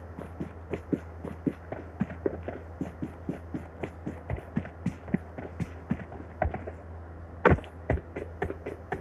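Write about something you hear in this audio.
Quick footsteps thud on grass at a running pace.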